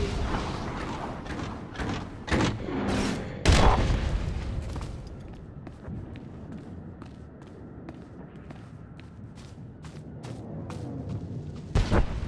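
Flames crackle.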